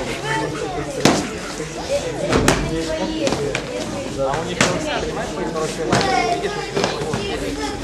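Padded foam swords thump against shields and armour.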